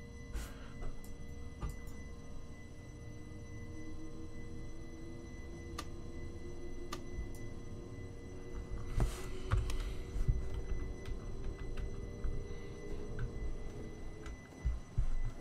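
A train's electric motor whines, slowly rising in pitch.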